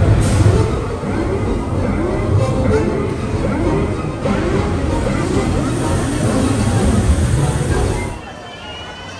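Flames roar and whoosh loudly.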